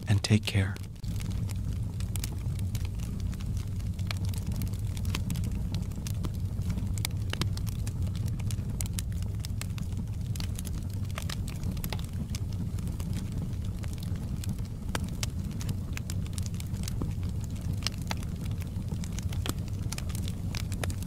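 A wood fire crackles and pops steadily.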